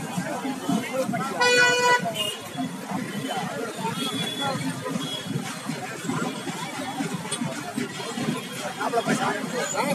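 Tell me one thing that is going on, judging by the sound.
A crowd of men and women chatter loudly outdoors.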